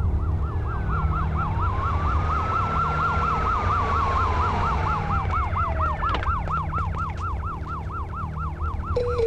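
A car engine hums as the car drives slowly.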